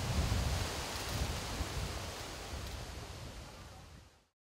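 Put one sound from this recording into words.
Small waves lap gently against a shore.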